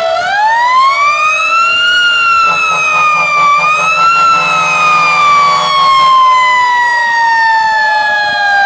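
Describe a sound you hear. A fire truck siren wails loudly, rising and falling.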